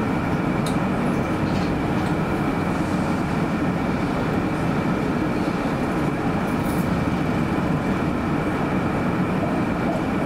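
Cars drive across an intersection close by.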